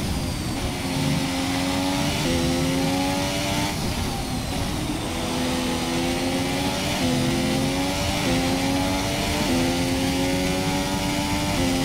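A racing car engine screams at high revs, climbing in pitch and dropping sharply with each gear change.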